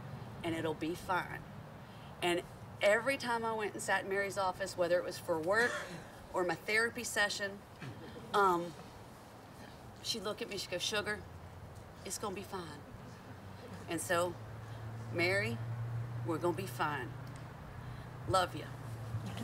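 A middle-aged woman speaks emotionally into a microphone, outdoors.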